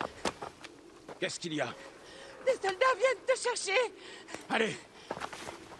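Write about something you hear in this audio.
A young boy speaks urgently.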